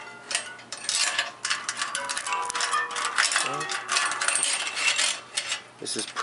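A bicycle chain rattles over a sprocket.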